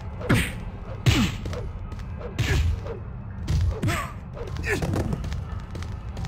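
Punches thud as two fighters brawl.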